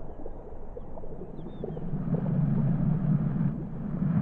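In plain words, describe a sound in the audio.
Water sloshes in a glass bowl.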